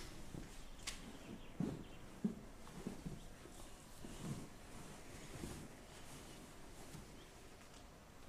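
A child climbs onto a sofa with soft rustling.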